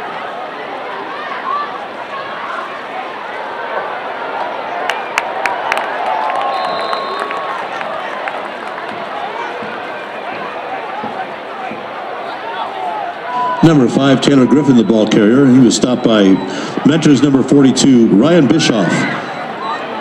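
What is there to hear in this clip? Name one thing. A crowd murmurs and cheers outdoors in open air.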